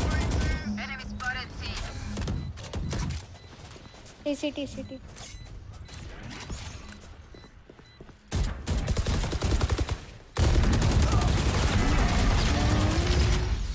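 Rapid gunshots fire in sharp bursts.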